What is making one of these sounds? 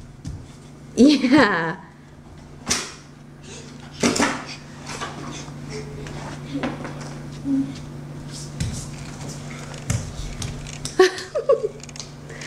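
A young girl squeals and shouts playfully nearby.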